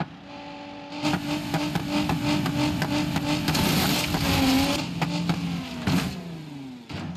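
A vehicle crashes with loud metal bangs.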